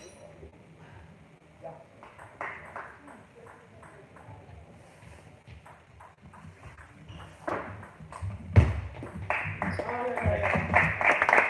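A table tennis ball clicks sharply back and forth off paddles and the table in a quick rally.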